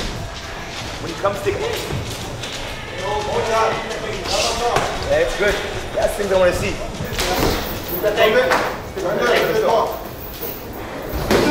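A middle-aged man speaks calmly and earnestly, close by.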